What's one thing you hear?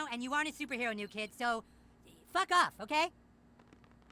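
A cartoon boy speaks angrily and rudely.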